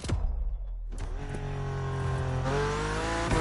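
A sports car engine roars at high speed and rises in pitch.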